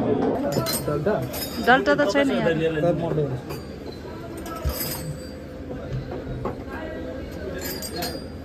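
Small metal cups clink against each other and a table.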